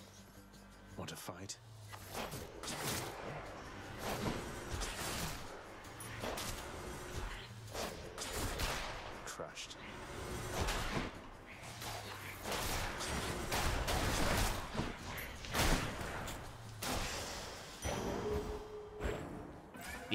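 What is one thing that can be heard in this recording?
Sword strikes and fiery blasts crash and burst in quick bursts.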